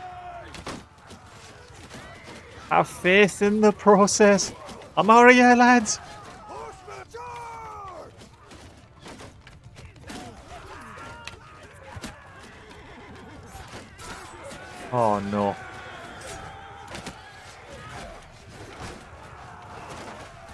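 Swords and shields clash and clank in a battle.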